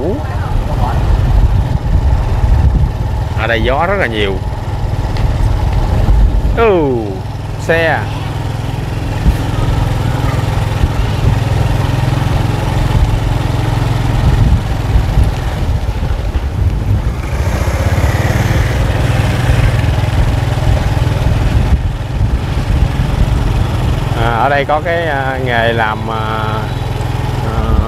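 A motorbike engine hums steadily at low speed.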